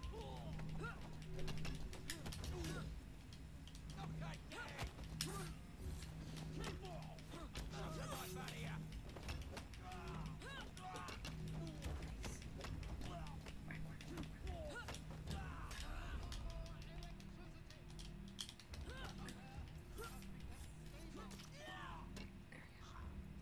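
Punches land with heavy thuds in a fistfight.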